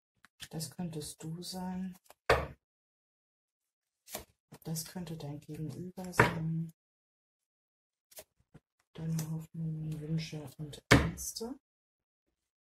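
A woman speaks calmly and close by, in short bursts with pauses.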